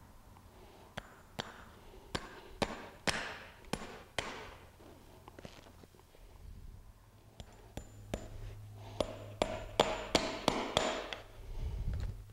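A hammer taps sharply on horseshoe nails.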